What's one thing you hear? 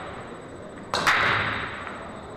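A cue strikes and pool balls break apart with a loud crack.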